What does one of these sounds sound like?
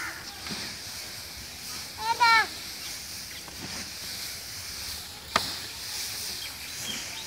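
Hands rustle and toss dry chopped fodder.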